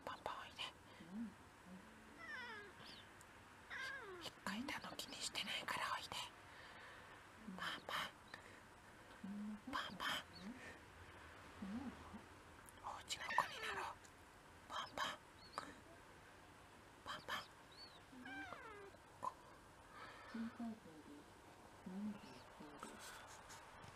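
A cat meows softly now and then.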